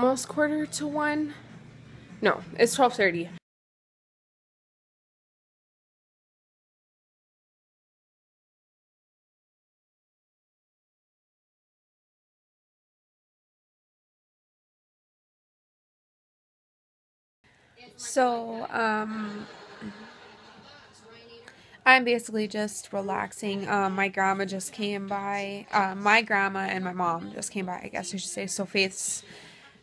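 A young woman talks close to a microphone.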